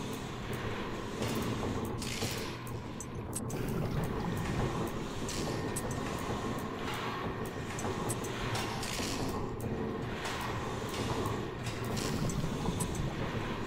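Game tiles click softly as they swap into place.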